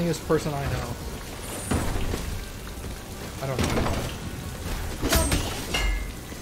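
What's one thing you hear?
Sword swipes and hit effects from a video game whoosh and clang.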